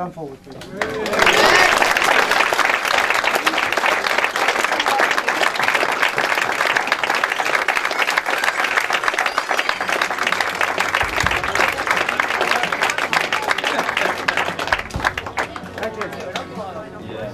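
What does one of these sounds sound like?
A crowd claps and cheers loudly in a large room.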